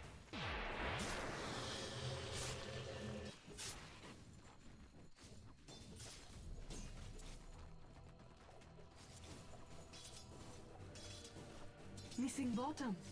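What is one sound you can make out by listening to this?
Magic spells crackle and weapons strike in a fantasy battle.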